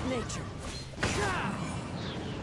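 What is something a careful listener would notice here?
Crystals shatter with a bright tinkling crash.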